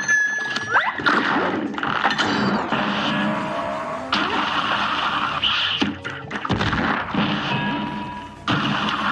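Bursts of magical blasts whoosh and crash.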